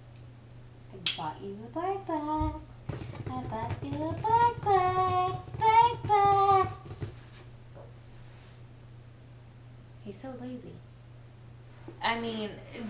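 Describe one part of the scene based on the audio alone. A young woman talks in a high, playful voice close by.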